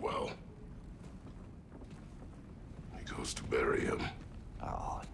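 A deep-voiced man speaks in a low, gruff voice.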